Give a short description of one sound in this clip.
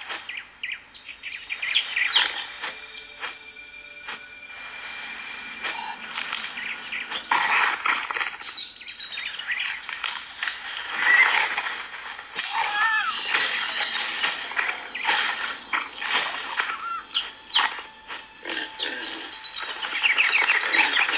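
Lively game music and sound effects play from a tablet's small speaker.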